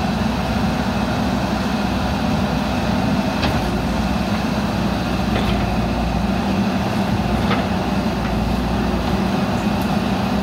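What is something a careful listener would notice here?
A digger bucket scrapes and dumps soil.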